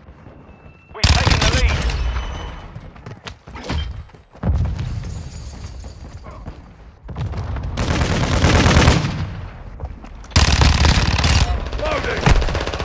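A submachine gun fires.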